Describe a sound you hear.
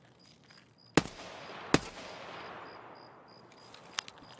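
A rifle fires two shots that echo outdoors.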